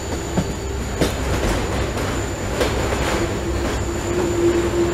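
A train's wheels squeal on a curve.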